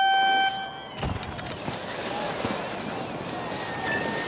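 Skis hiss and scrape over snow at speed.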